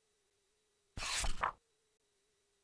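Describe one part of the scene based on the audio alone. A page of a paper book turns with a quick rustle.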